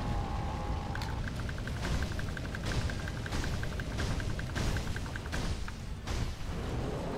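A sword strikes with sharp metallic clangs.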